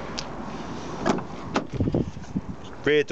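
A car door clicks and opens.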